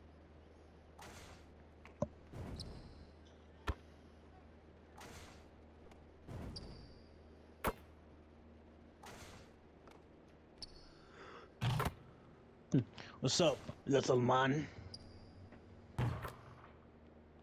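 A basketball swishes through a net again and again.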